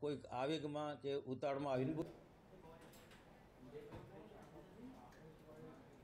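A middle-aged man speaks firmly into microphones.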